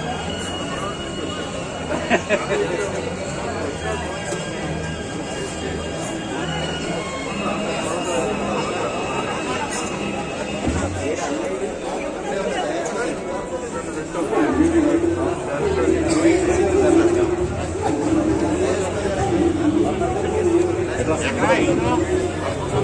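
A crowd of men chatter close by outdoors.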